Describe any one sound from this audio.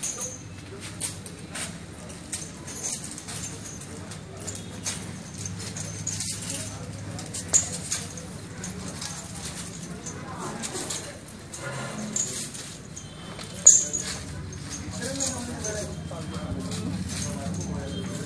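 A heavy chain clinks and rattles.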